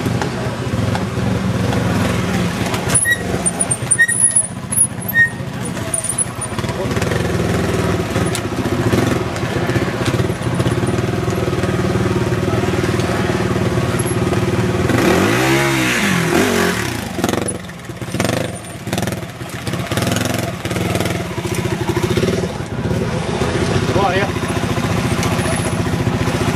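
A motorcycle engine revs and sputters close by.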